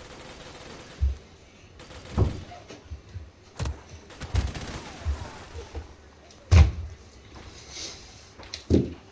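Gunshots crack and boom in short bursts.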